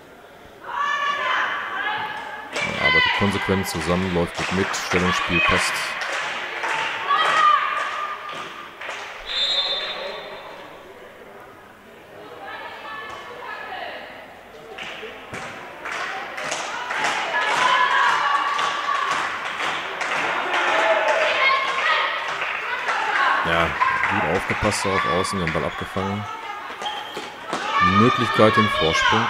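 Young women shout and call out across a large echoing hall.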